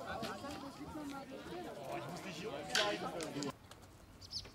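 People chat outdoors nearby.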